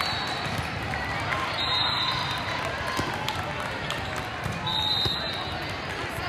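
A volleyball bounces on a hard floor.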